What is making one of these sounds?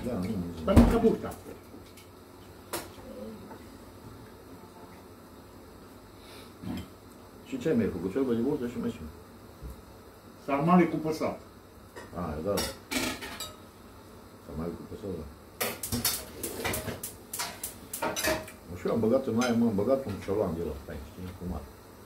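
Middle-aged men talk nearby in a small room.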